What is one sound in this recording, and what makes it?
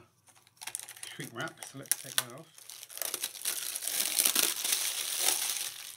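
Plastic wrapping crinkles and rustles under handling.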